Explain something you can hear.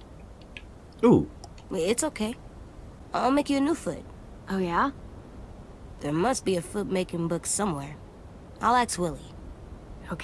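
A young boy speaks softly and calmly.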